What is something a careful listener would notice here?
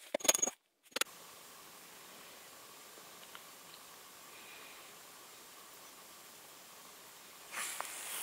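Wind hushes softly through the trees outdoors.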